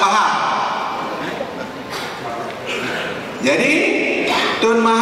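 An elderly man speaks steadily into a microphone over a loudspeaker in a large echoing hall.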